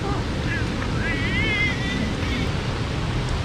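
A small child babbles and squeals nearby.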